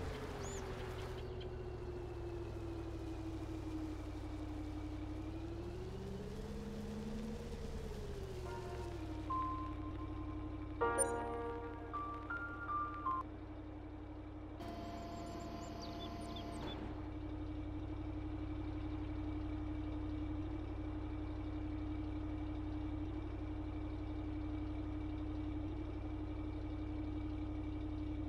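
A truck engine hums steadily and revs briefly.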